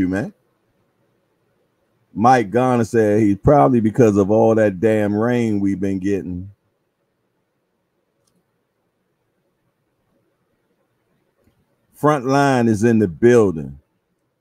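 A man speaks calmly and close into a microphone, pausing between phrases.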